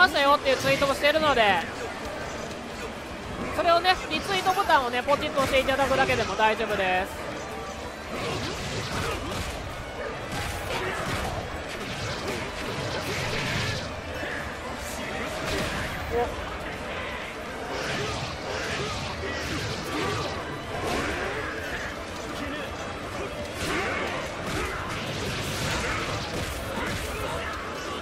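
Punches, slashes and energy blasts from a fighting game thud and crackle in quick bursts.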